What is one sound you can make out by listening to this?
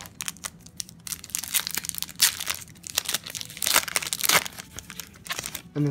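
Foil wrappers crinkle and rustle in hands.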